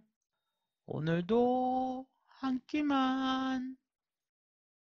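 A young woman sings out a short cheerful phrase loudly into a microphone.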